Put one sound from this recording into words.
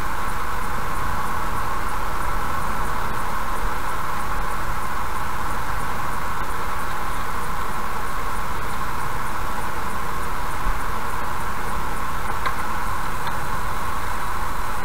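A car drives steadily along a road, with a constant rumble of tyres and engine from inside.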